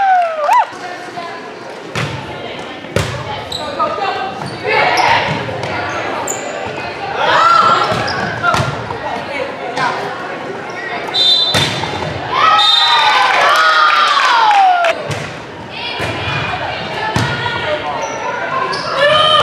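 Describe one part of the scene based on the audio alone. A volleyball is hit with sharp smacks.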